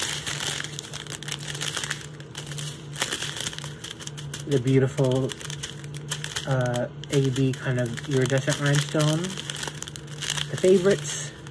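Small beads rattle in a plastic bag.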